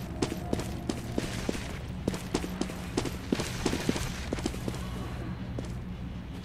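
Footsteps tap quickly and steadily on a hard floor.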